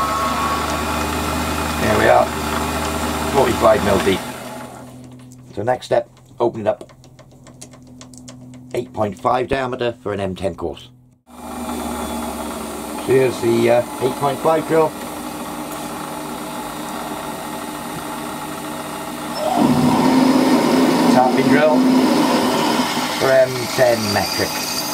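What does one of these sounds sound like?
A lathe motor hums steadily, stops, then starts up again.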